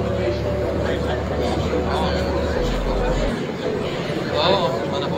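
A crowd of men murmurs and talks over one another nearby.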